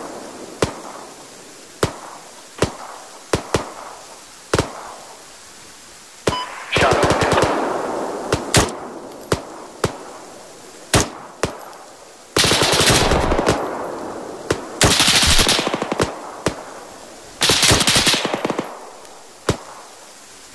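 Single gunshots ring out and echo away.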